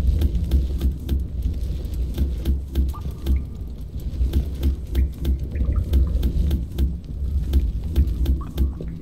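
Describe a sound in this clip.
A game's mining beam fires in rapid, deep, rhythmic thumps.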